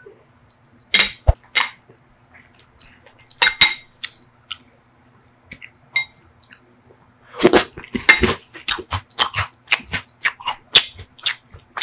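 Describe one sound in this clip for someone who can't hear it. A metal spoon scrapes and clinks against a glass bowl.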